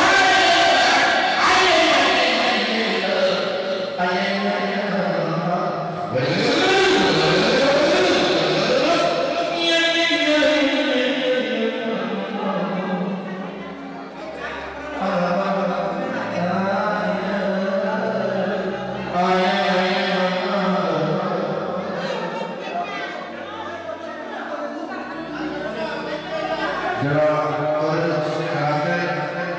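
A man talks with animation into a microphone, heard through loudspeakers in an echoing hall.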